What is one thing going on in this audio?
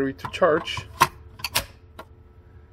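A plastic battery clicks into place on a charger.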